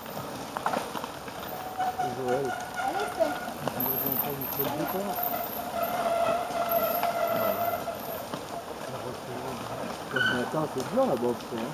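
Bicycle tyres crunch over dry leaves as riders pass close by.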